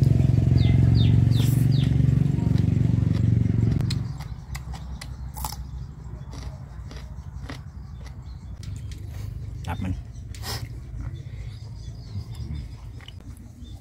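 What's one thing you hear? A man chews crunchy food close by.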